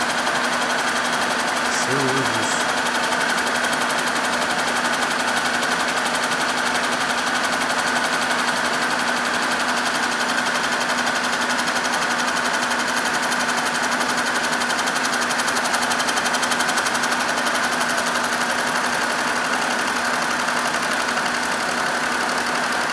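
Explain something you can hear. A milling machine's fly cutter cuts through a steel block with rapid rhythmic chatter.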